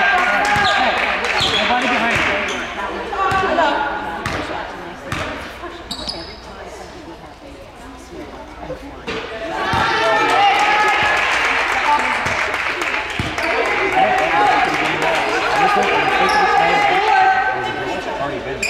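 Players shout and call out across a large echoing gym.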